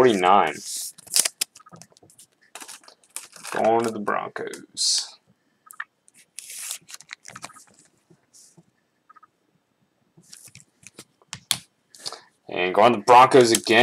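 A stiff plastic card sleeve crinkles and scrapes as it is handled.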